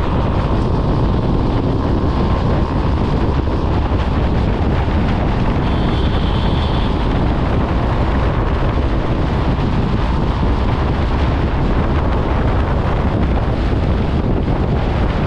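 Wind roars loudly against a microphone on a moving motorcycle.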